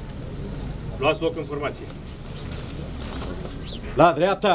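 A man speaks in short bursts nearby.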